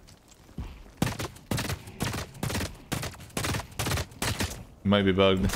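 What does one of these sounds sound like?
A rifle fires in quick bursts.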